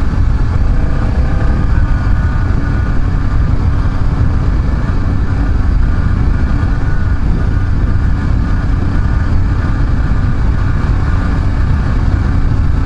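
Wind rushes past loudly outdoors.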